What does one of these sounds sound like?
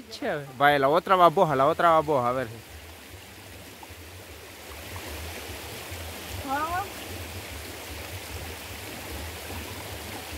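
A shallow stream gurgles steadily over stones.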